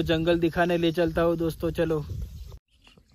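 A young man talks with animation close to the microphone.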